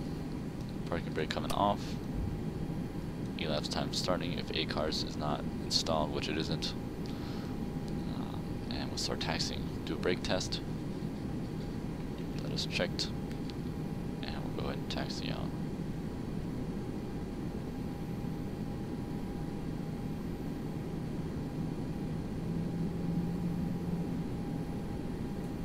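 Jet engines hum steadily at idle as an airliner taxis.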